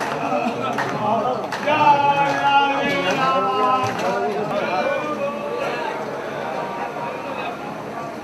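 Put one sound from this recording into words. Several men chant together in a steady, droning rhythm.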